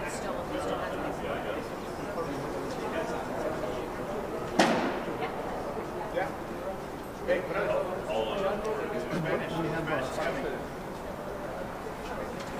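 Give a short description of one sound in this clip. Several men talk over one another in a large, echoing space.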